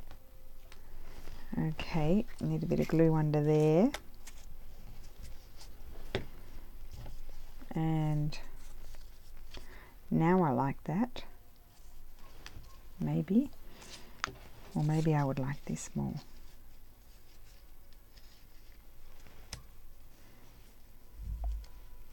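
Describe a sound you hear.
Paper rustles softly as it is handled.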